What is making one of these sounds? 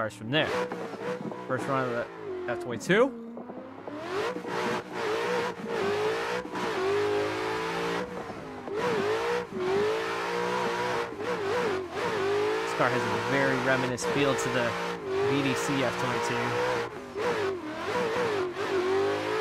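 A racing car engine revs up and down, changing gears.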